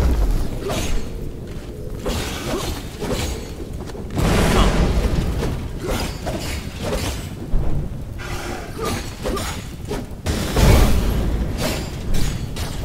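Blades clash and slash in quick, repeated bursts.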